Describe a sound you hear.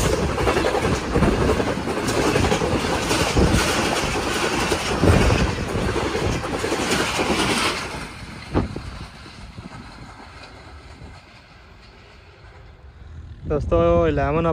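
A passenger train rushes past close by, wheels clattering on the rails, then fades into the distance.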